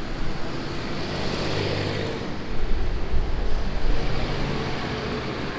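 A vehicle passes close by with a loud whoosh.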